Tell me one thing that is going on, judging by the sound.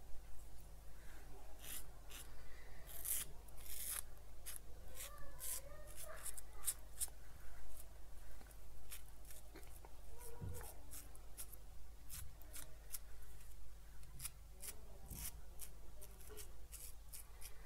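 A razor scrapes through stubble in short strokes.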